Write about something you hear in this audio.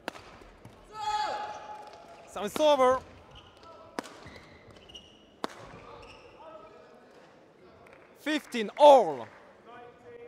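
Shoes squeak loudly on an indoor court floor.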